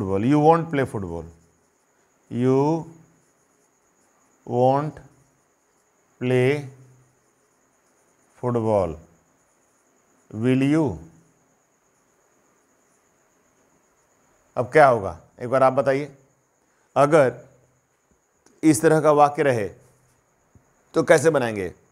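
A middle-aged man speaks in short, clear phrases with pauses, close by.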